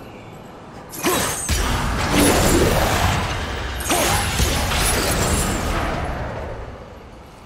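A blade smashes into a large block of ice with a loud, cracking crash.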